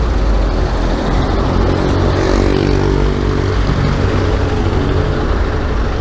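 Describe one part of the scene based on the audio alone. A truck engine rumbles close by.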